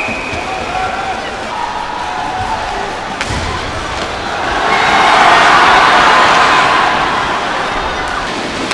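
A crowd in a large arena cheers, swelling loudly and then easing off.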